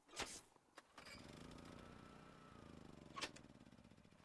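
A small engine starts and runs with a steady low hum.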